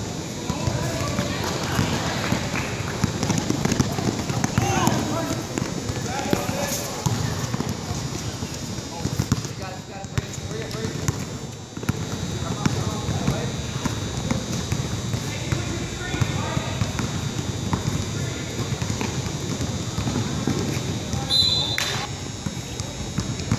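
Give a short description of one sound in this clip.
A crowd of spectators and players talk and call out in the background.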